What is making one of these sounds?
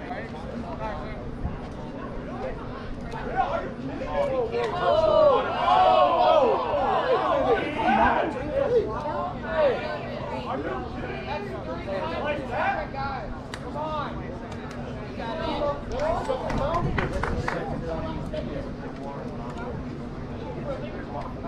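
Children and adults shout and cheer outdoors from the sidelines.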